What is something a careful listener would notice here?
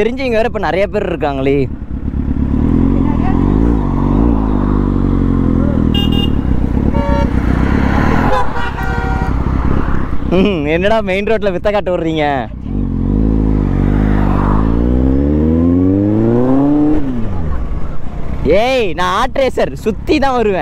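A motorcycle engine revs up and down loudly close by.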